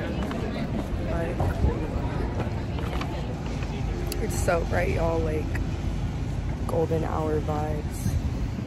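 A young woman talks close by, calmly and casually.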